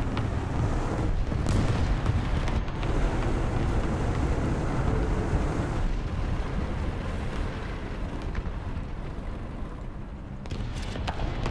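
A tank engine rumbles deeply.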